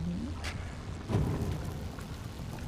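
An explosion roars.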